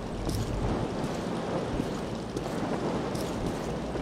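Boots thud on wooden ladder rungs during a climb down.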